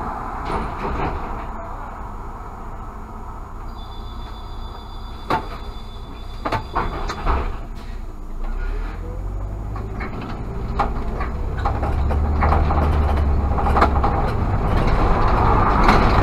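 A car engine hums steadily from close by, rising as the car speeds up.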